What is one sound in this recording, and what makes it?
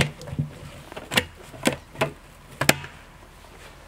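Plastic buckets knock and clatter.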